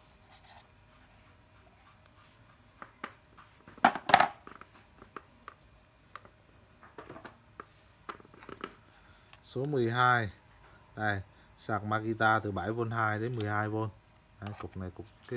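A plastic case knocks and rattles as hands turn it over.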